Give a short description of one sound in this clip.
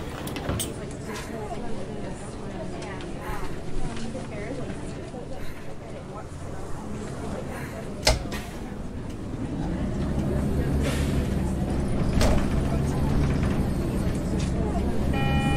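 A bus engine hums low and grows louder as the bus pulls away.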